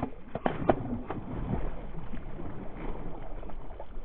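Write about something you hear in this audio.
A large bass thrashes and splashes at the water surface.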